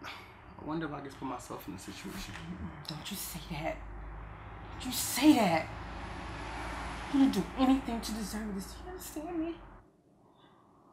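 A woman speaks emotionally and close by.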